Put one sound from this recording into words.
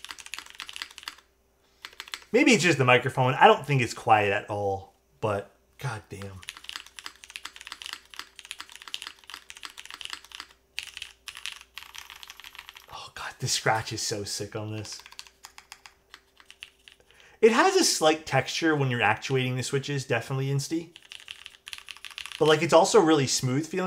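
Keys clack rapidly on a mechanical keyboard.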